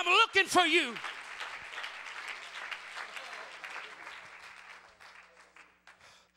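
A crowd applauds and cheers, slowly fading.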